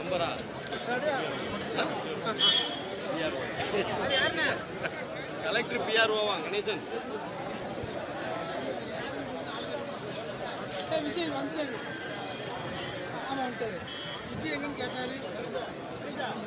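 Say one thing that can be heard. A large crowd of men chatters and calls out outdoors.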